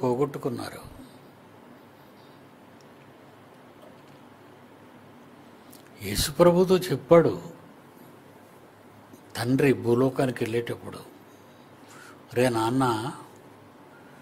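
An elderly man speaks calmly in short phrases into a close microphone, with long pauses.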